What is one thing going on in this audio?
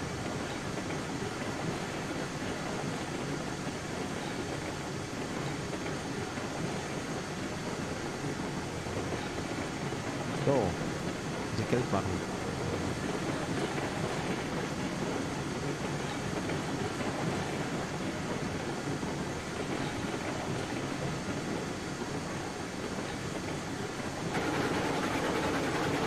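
Train wheels rumble and clatter over rails.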